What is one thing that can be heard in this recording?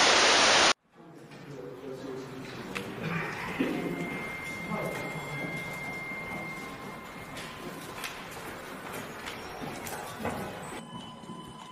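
A group of men talk in low voices in an echoing tunnel.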